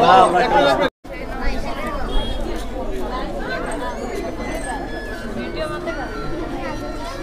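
A crowd of adults murmurs and talks nearby.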